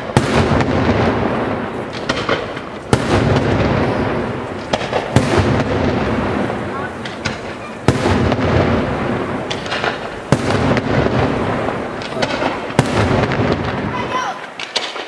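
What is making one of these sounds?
Firework shells burst with loud, booming bangs every few seconds, echoing outdoors.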